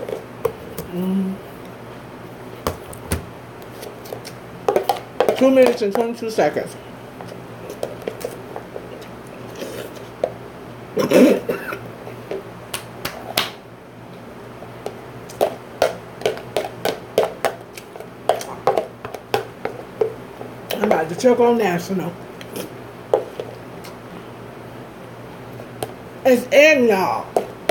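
A woman chews and slurps food loudly up close.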